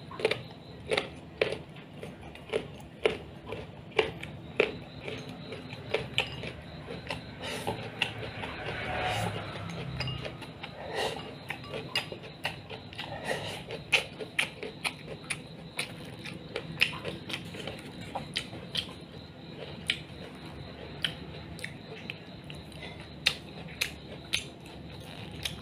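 A man chews food loudly and smacks his lips close by.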